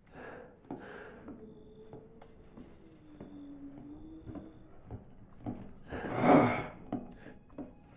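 Footsteps creak on a wooden floor.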